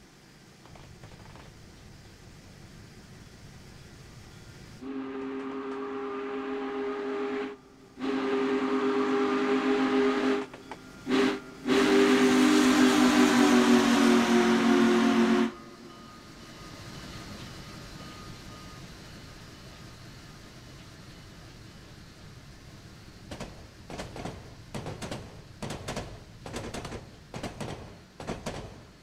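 A steam train chugs and rumbles along the tracks.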